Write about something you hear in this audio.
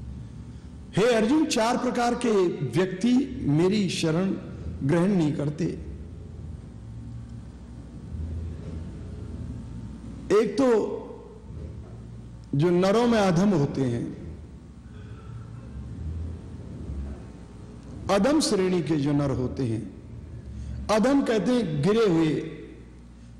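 An elderly man chants slowly and melodically into a microphone, with pauses between phrases.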